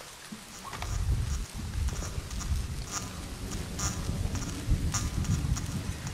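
Footsteps tread softly on a hard surface.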